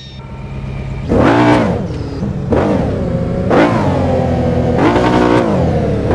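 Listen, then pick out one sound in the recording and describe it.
A car engine revs in sharp bursts.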